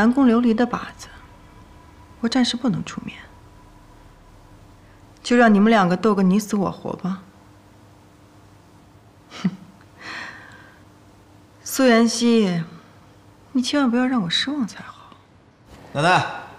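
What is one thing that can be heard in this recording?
A young woman speaks calmly and coldly, close by.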